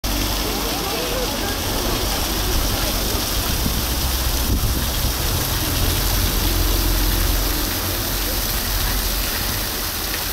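A waterfall splashes steadily onto rocks.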